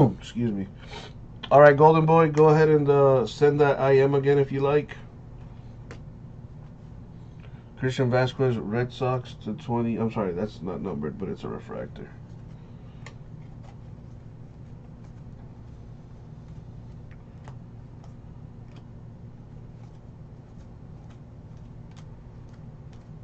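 Trading cards softly rustle and flick as they are sorted by hand.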